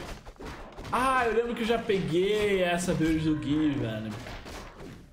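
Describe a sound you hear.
A young man shouts loudly in excitement.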